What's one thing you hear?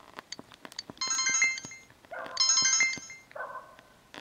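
A short bright chime rings out twice.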